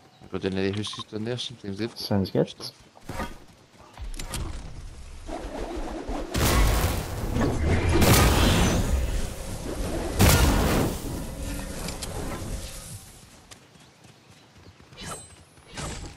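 Footsteps run over grass and dirt.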